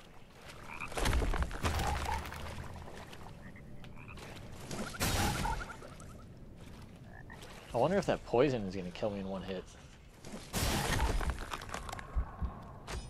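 A sword clashes and slashes in combat.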